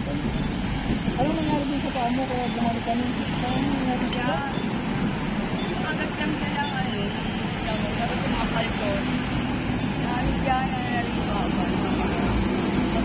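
An elderly woman talks nearby in a pleading voice.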